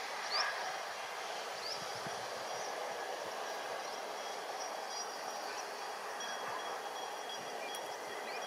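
A distant train rumbles slowly closer on the tracks.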